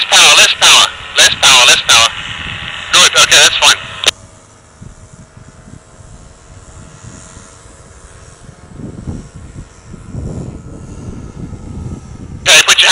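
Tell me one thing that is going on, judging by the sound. A paramotor engine drones steadily far overhead.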